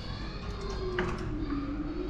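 A door handle clicks as it is turned.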